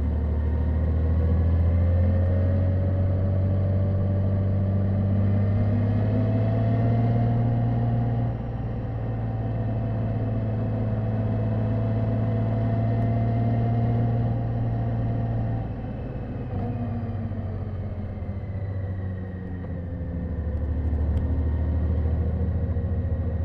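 A motorcycle engine hums steadily close by, rising and falling in pitch as it speeds up and slows down.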